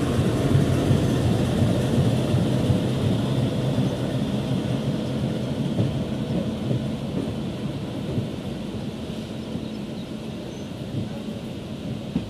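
A diesel locomotive engine drones as it passes.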